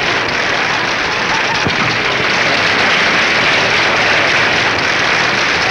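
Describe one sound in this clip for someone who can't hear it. A crowd of children claps loudly.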